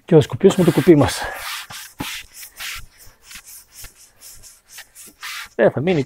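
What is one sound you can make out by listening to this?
A cloth rubs and scrapes against a rough wall.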